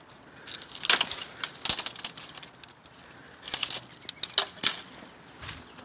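Twigs and branches rustle and snap as a hand pushes through them.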